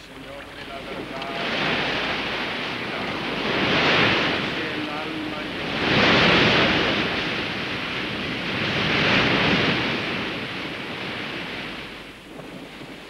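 Sea water rushes and surges against a sailing ship's bow.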